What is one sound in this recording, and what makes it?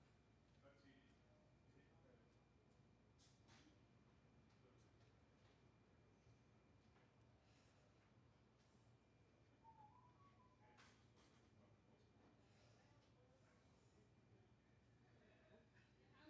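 A paintbrush dabs softly on canvas.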